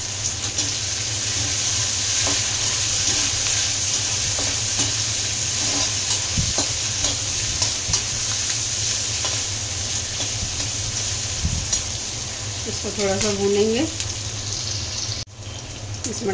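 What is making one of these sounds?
Onions sizzle as they fry in oil.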